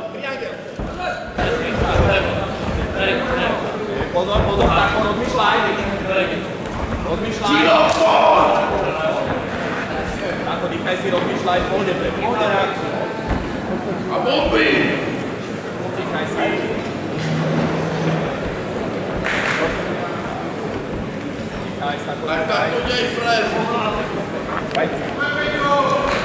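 A large crowd cheers and shouts loudly in an echoing arena.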